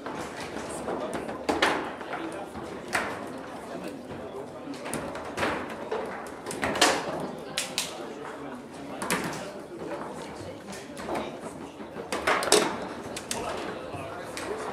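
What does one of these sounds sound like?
Foosball rods clatter as a ball cracks sharply against a table's walls.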